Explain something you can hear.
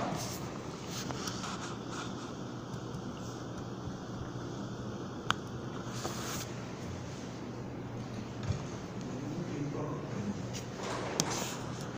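An electric fan hums steadily nearby.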